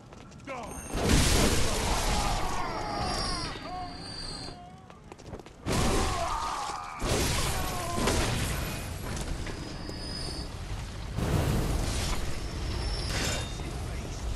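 Blades slash and strike flesh in a fight.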